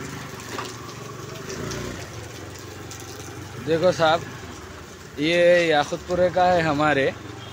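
Water trickles over a rough road.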